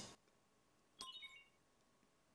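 A soft electronic chime rings.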